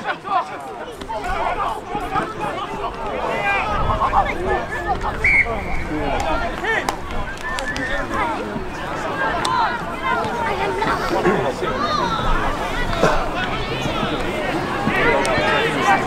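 A crowd of spectators murmurs and chatters in the distance.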